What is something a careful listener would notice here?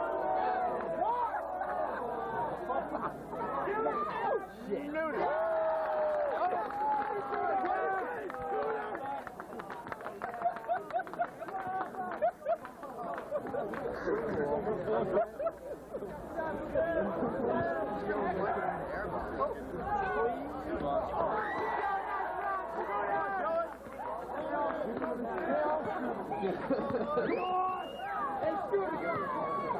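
A large crowd of young people chatters and cheers outdoors.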